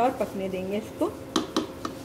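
A wooden spoon stirs a thick mixture in a metal pot.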